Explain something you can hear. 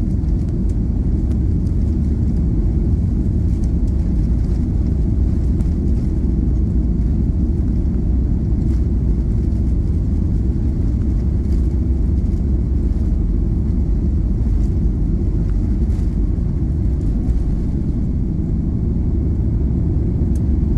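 Jet engines roar steadily inside an airliner cabin.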